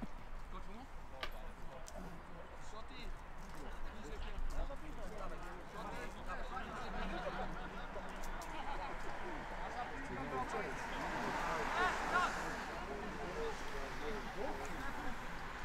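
Several men shout and call out to each other outdoors.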